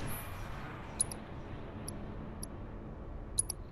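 Short high menu beeps chirp a few times.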